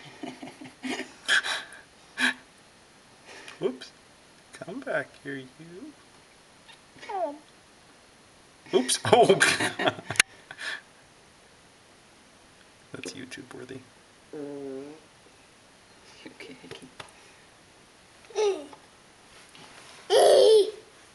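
Young wild cats mew and chirp as they tussle nearby.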